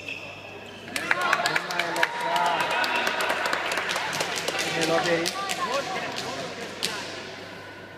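Shoes squeak sharply on the hall floor.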